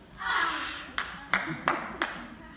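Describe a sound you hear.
Dancers' feet thump on a wooden stage floor in an echoing hall.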